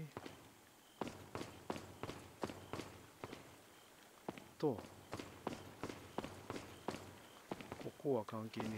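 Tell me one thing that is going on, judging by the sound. Footsteps tap steadily on a hard stone floor in an echoing room.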